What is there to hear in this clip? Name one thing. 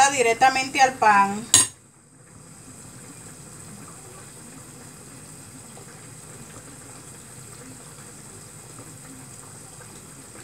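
A spoon scrapes and taps in a dish of rice.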